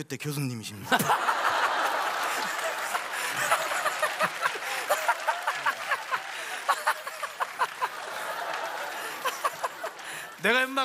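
An audience laughs loudly and claps.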